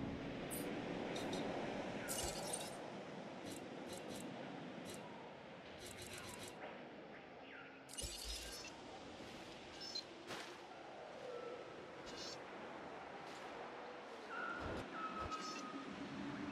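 Soft electronic interface clicks and chimes sound now and then.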